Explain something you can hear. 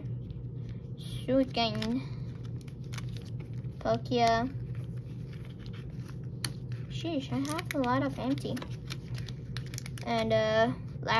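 Plastic card sleeves rustle softly as they are flipped.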